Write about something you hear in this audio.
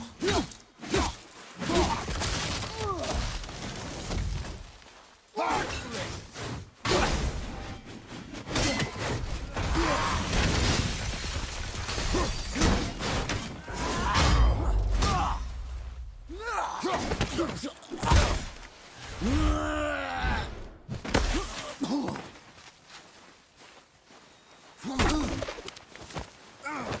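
Heavy blows and impacts thud as two men fight.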